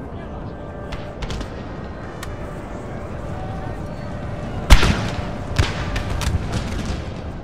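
Musket volleys crack and rumble in the distance.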